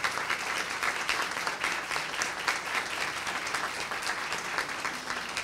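A group of people applaud steadily.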